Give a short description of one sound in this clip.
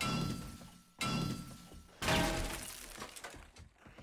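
A stone axe strikes wood with heavy blows.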